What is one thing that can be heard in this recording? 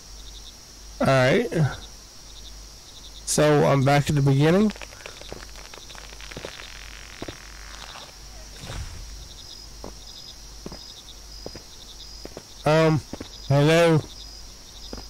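A man talks into a close microphone in short bursts.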